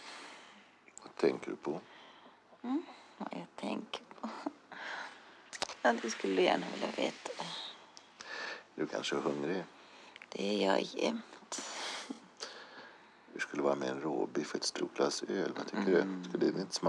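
A man speaks softly and intimately, close by.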